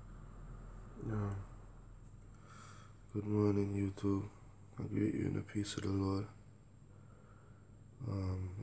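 A man speaks calmly and slowly, close by, in short bursts with pauses.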